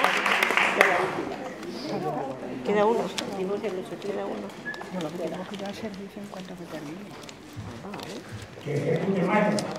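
People murmur quietly in an echoing hall.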